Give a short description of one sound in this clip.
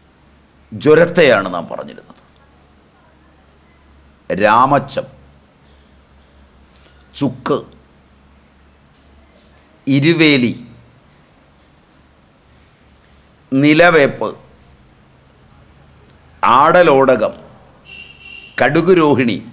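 An elderly man speaks calmly in short phrases with pauses, close to a microphone.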